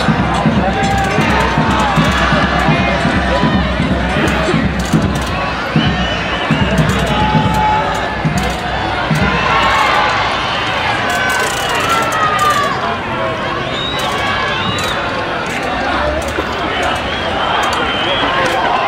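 A large crowd chatters and cheers outdoors.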